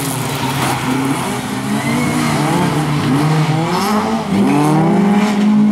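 Tyres skid and scrape over loose gravel.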